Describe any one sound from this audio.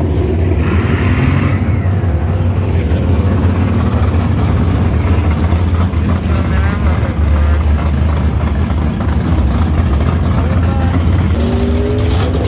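A drag racing engine roars loudly during a burnout.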